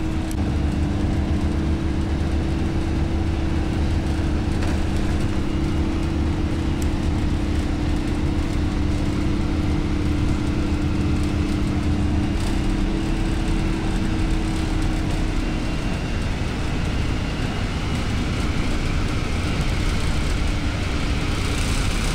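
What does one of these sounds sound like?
A vehicle's engine drones, heard from inside the cabin.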